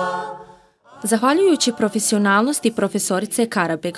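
A woman speaks calmly and clearly nearby.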